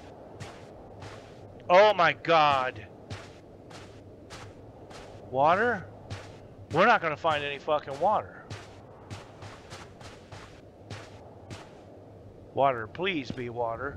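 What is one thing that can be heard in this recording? Footsteps tread steadily on dry ground.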